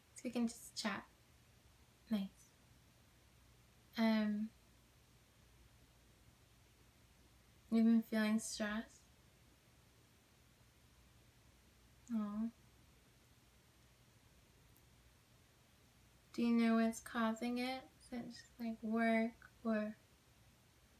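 A young woman speaks calmly and close by, with pauses between her phrases.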